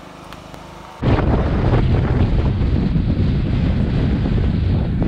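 Wind rumbles loudly against the microphone outdoors.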